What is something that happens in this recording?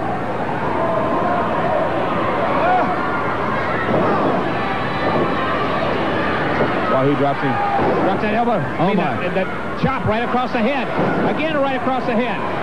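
A large crowd roars and cheers in a big echoing arena.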